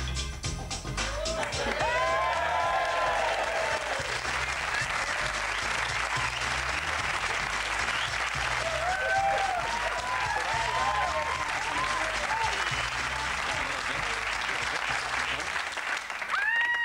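A studio audience cheers and applauds loudly.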